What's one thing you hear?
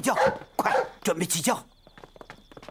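A man calls out loudly nearby.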